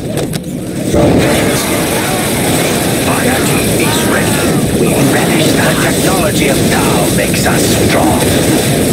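Laser guns fire and soldiers clash in a loud, chaotic battle.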